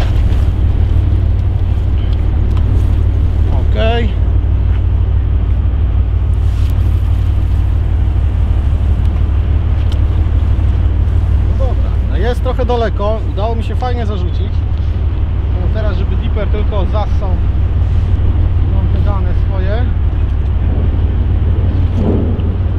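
Wind buffets the microphone outdoors with a steady low rumble.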